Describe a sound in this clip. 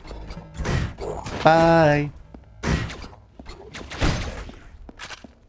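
Gunshots blast in short bursts.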